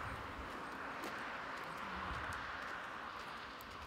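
Footsteps tap softly on a paved path.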